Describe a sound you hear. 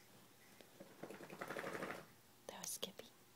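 A baby coos softly close by.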